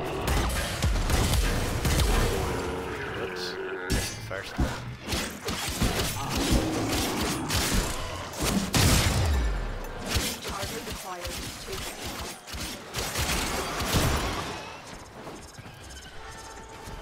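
Rapid gunfire and energy blasts crack and thump.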